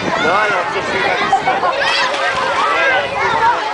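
Water splashes as a small girl jumps into a pool.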